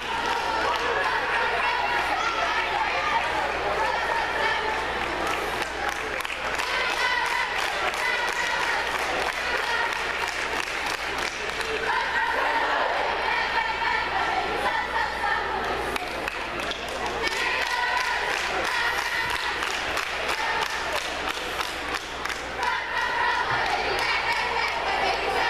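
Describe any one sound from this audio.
A group of girls chant and shout cheers in unison outdoors.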